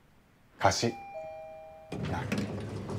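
An elevator chimes.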